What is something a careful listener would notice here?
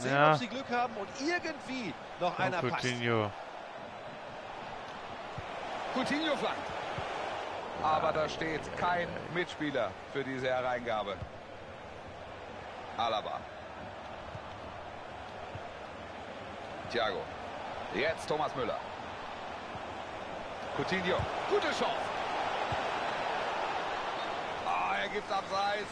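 A large stadium crowd roars and murmurs steadily throughout.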